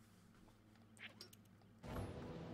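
A short electronic menu sound plays as the menu switches.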